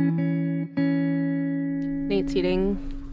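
Music plays.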